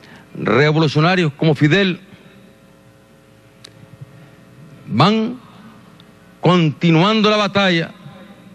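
An elderly man speaks forcefully into a microphone, with long pauses.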